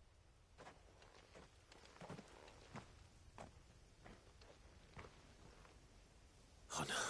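Footsteps crunch slowly over dry grass.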